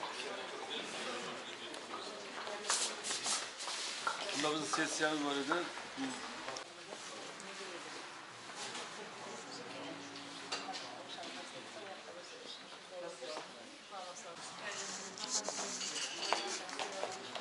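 Men talk in low voices nearby in a large echoing hall.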